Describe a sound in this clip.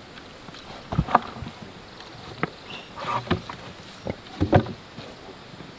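A wooden board thumps against packed earth.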